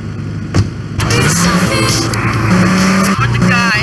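A car engine starts and revs loudly.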